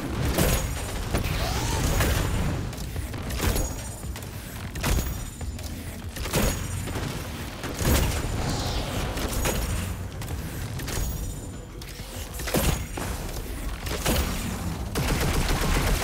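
Heavy gunshots boom every second or so, with a short echo after each.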